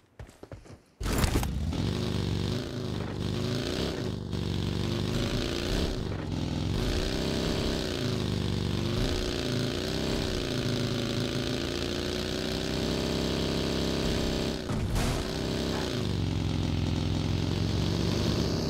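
A buggy's engine roars and revs up and down.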